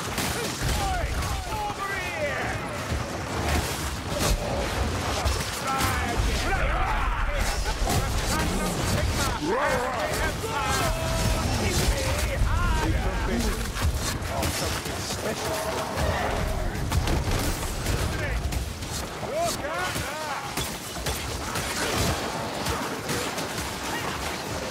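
Blades slash and hack into flesh again and again.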